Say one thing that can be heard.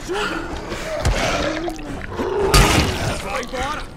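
A snarling creature growls and groans.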